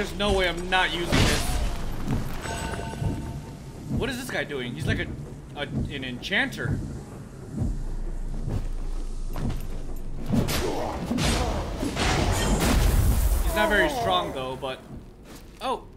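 Heavy blades swing and clash in a fight.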